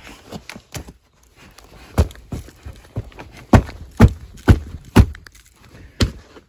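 A boot stamps hard on a concrete block with sharp thuds.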